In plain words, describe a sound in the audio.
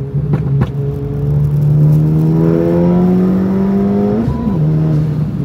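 A turbocharged four-cylinder engine climbs in pitch under hard acceleration, then drops with an upshift.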